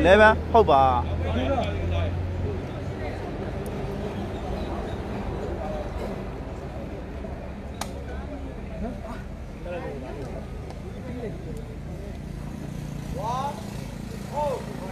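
A large crowd of spectators chatters outdoors.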